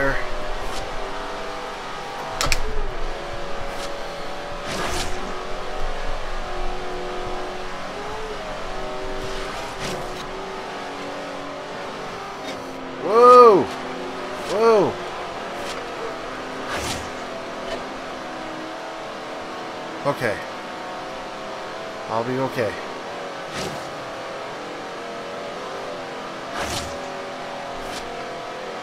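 A racing car engine roars at high speed, its pitch rising and falling with gear changes.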